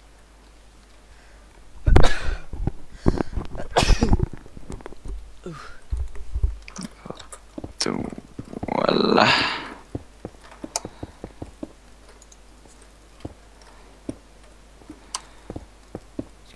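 Sandstone blocks thud softly as they are placed.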